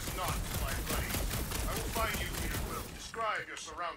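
Gunfire blasts rapidly from a game.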